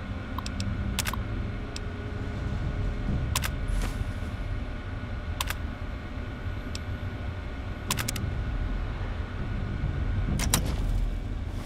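Computer keys clatter in short bursts every couple of seconds.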